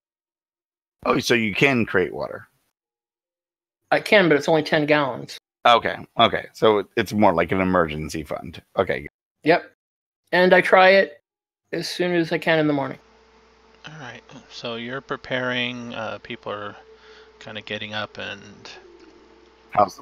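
Men talk with animation over an online call.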